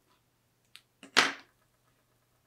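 Sticky vinyl crinkles as it is peeled off a wooden board.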